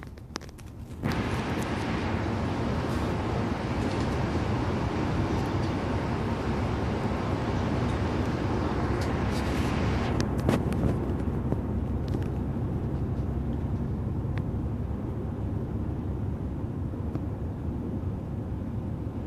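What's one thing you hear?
Tyres roar on the road surface, loudening sharply.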